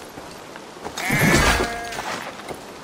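A sheep bleats loudly.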